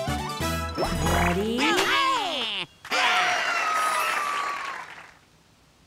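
Bouncy, cheerful game music plays.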